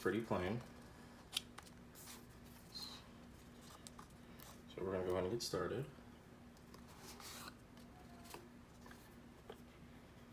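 A small cardboard box slides and rustles in someone's hands.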